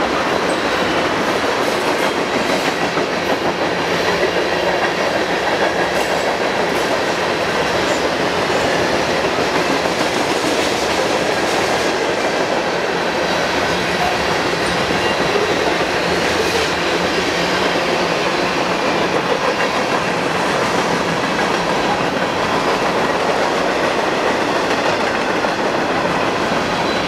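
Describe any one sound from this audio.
A train rumbles steadily past.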